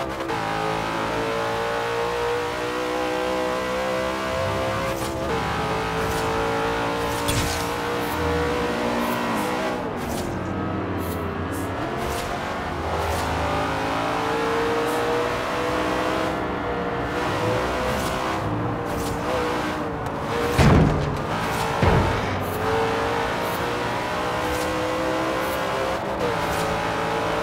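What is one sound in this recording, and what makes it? A car engine roars loudly at high revs, its pitch rising and falling with the gear changes.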